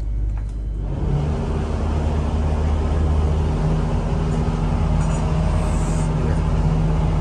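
A boat's engine drones steadily with a low hum.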